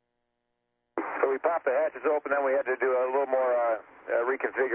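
A man speaks with animation over a radio link.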